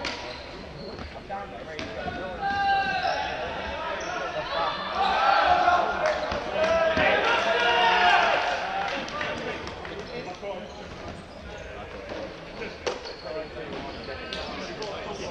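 Sneakers squeak and thud on a wooden floor.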